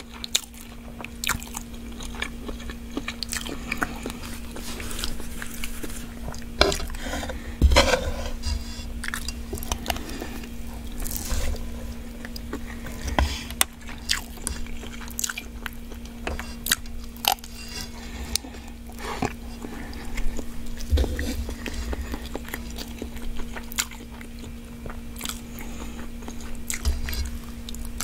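A fork scrapes and clinks against a metal pan close to a microphone.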